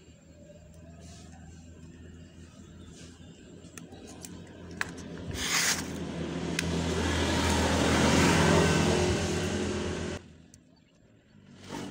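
Wire cutters snip through thin electrical wires.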